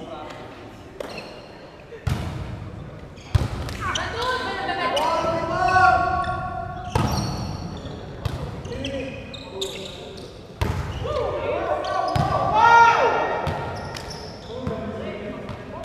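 A ball thumps on the court.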